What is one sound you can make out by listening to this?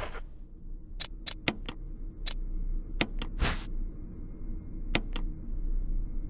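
Short game menu clicks sound as options are picked.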